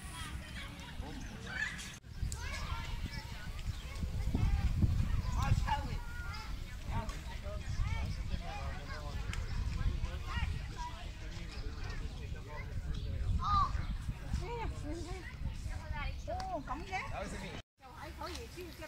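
A crowd of adults and children chatter and call out nearby outdoors.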